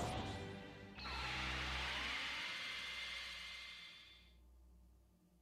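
A shimmering whoosh rings out and fades.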